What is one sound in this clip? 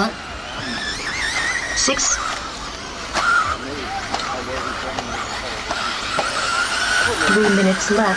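A small electric motor whines, rising and falling in pitch as a model car races over dirt.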